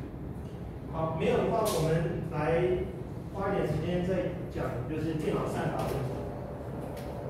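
A man speaks calmly, heard from across a room.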